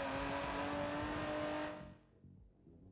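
A sports car engine roars at speed.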